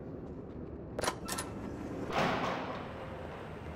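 A heavy door bangs open.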